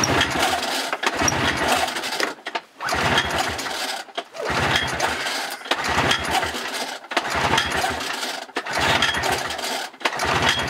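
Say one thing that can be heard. A snowmobile engine cranks over with a rough rattling whir each time its starter cord is yanked, again and again.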